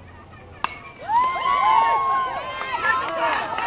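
Young voices shout and cheer loudly outdoors.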